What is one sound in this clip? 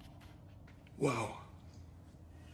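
A man exclaims loudly in surprise.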